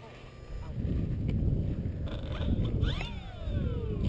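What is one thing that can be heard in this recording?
A small model plane skids to a stop on grass.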